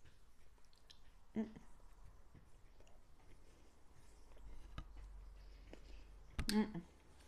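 A woman chews food close to a microphone.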